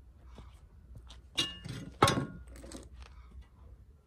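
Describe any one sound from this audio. Wire mesh rattles as it is laid down.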